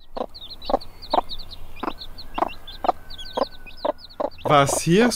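A hen pecks at wood with sharp taps.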